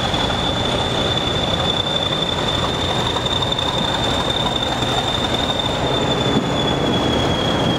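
A diesel locomotive engine rumbles loudly as it rolls slowly past.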